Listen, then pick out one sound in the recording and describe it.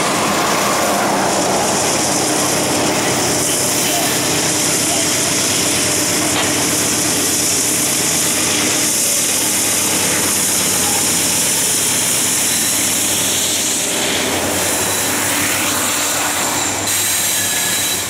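A diesel locomotive engine rumbles loudly as it approaches and passes close by.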